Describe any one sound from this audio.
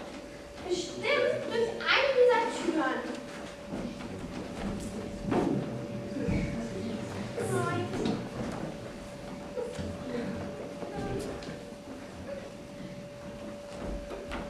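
A young girl speaks loudly and expressively.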